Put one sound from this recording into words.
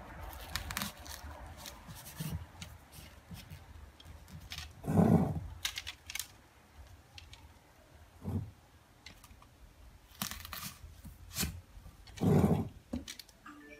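Dry grass stalks rustle and scrape against a ceramic jar.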